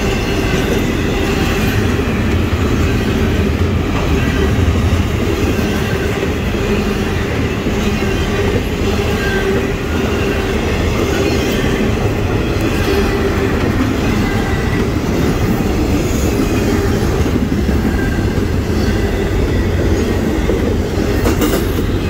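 A freight train rumbles and clatters loudly past close by.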